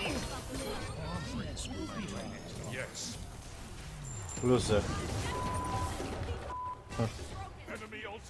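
Magic blasts and clashing combat effects burst in quick succession.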